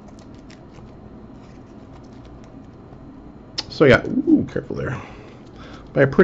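Trading cards rustle and flick as they are handled.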